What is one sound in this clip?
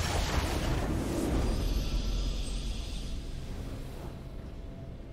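A triumphant game fanfare swells and slowly fades.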